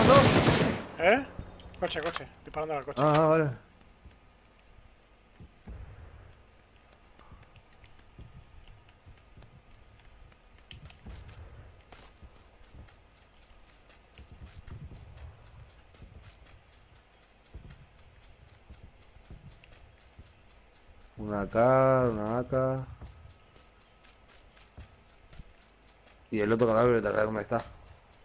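Footsteps tread softly on hard ground and grass.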